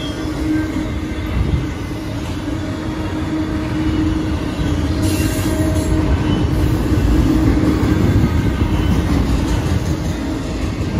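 Railway crossing bells ring steadily.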